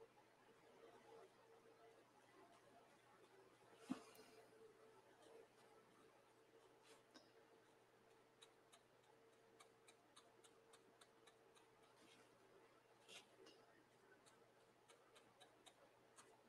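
A stiff brush taps and scratches lightly on a painting surface.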